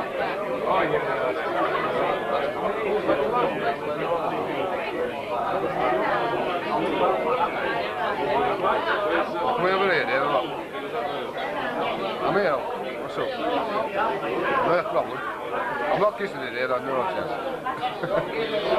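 A crowd of men and women chatter loudly close by.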